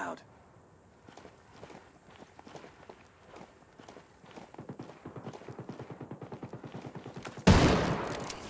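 Footsteps crunch on loose gravel.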